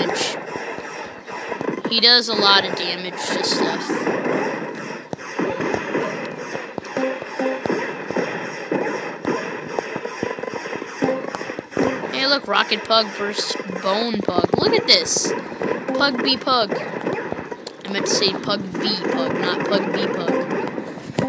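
Upbeat electronic game music plays throughout.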